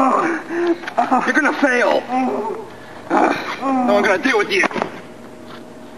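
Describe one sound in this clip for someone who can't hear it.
A young man talks loudly and with animation outdoors.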